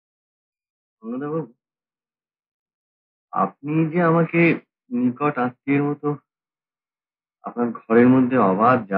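A second man answers calmly, close by.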